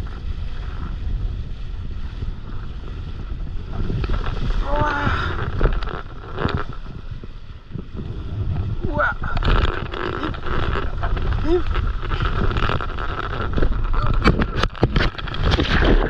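A sail flaps and rustles in the wind.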